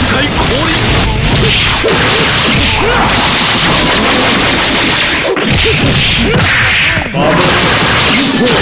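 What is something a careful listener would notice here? Energy blasts from a fighting game whoosh and crackle.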